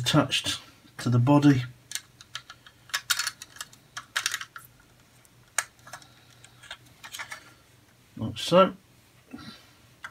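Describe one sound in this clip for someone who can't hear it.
Small plastic pieces click and snap together.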